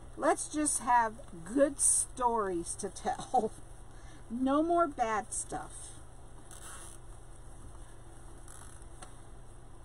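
Stiff netting rustles and crinkles as hands bunch it up.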